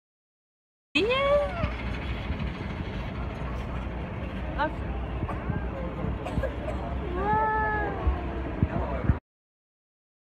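A young boy talks and laughs close to the microphone.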